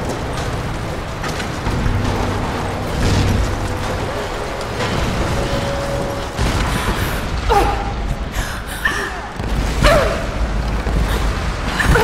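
A deep rumbling roar of collapsing structure fills the air.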